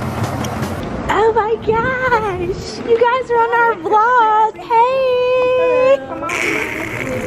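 A young woman talks loudly nearby.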